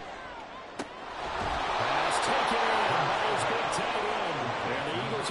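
A stadium crowd roars loudly in cheering.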